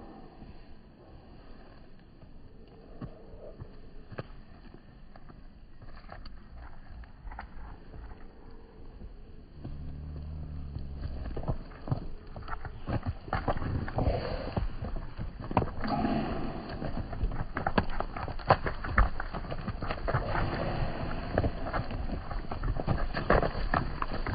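Many hooves patter on hard ground close by.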